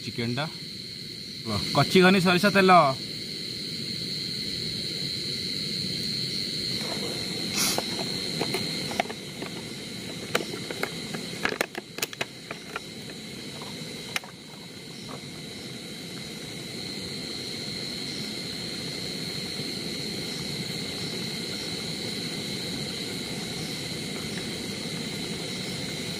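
A gas stove burner hisses steadily.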